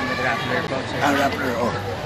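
A woman talks on a phone close by.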